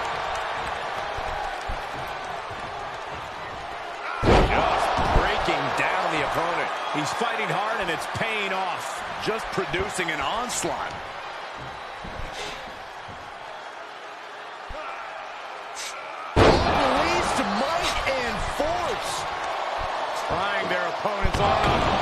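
A crowd cheers and roars loudly.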